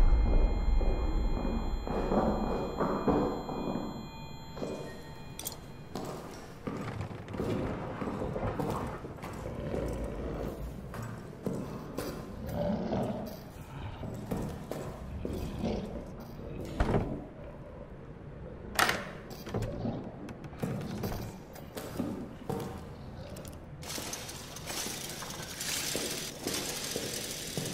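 Footsteps thud slowly across creaking wooden floorboards.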